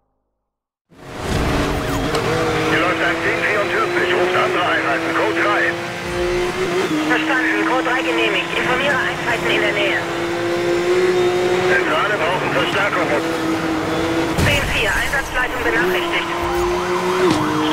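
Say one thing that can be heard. A racing car engine roars at high speed, its pitch dropping briefly at each gear change.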